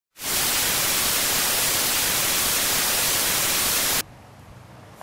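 Loud, steady static hisses, then cuts off abruptly.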